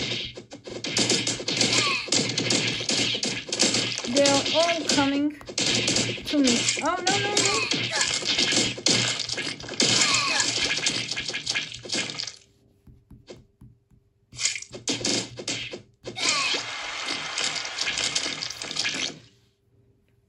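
A video game plays busy, noisy sound effects from a tablet speaker.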